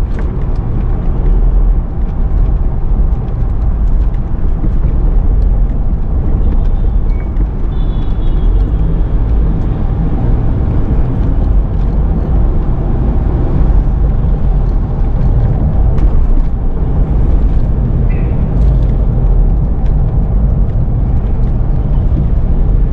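A car engine hums steadily and tyres roar on the road from inside a moving car.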